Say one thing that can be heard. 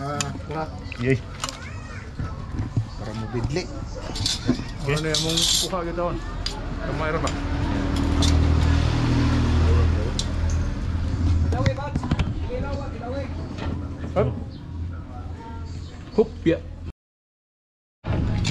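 A metal spoon clinks against plates and bowls.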